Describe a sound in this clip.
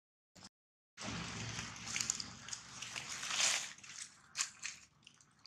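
Dry leaves rustle and crackle under a monkey.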